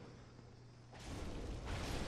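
A fireball bursts and roars.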